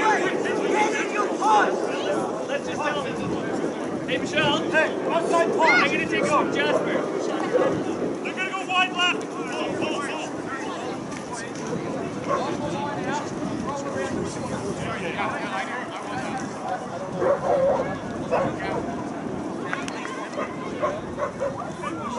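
Men shout to each other across an open field outdoors.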